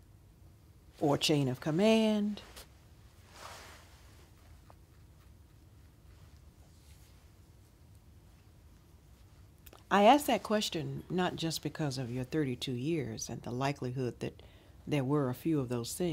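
An older woman speaks calmly and close by.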